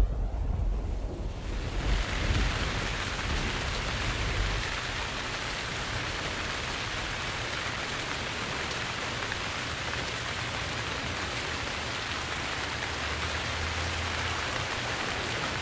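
Strong wind blows and rumbles outdoors.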